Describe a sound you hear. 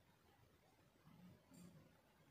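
Hands rustle soft knitted fabric.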